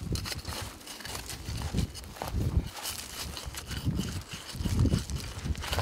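Small stones clatter as a man picks at the gravel.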